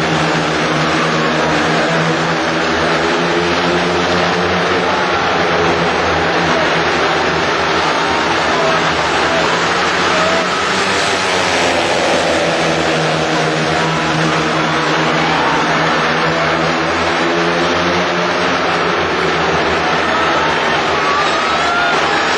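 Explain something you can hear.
A large crowd cheers in an echoing stadium.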